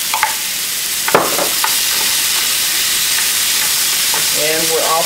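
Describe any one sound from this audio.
A spatula scrapes and knocks against a frying pan.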